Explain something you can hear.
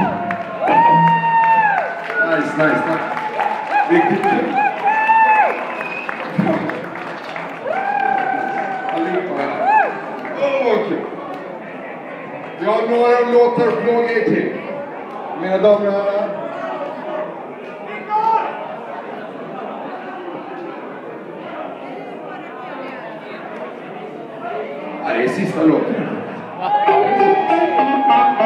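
A man sings loudly into a microphone over loudspeakers.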